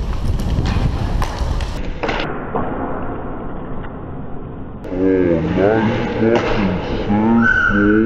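Skates scrape and carve across ice.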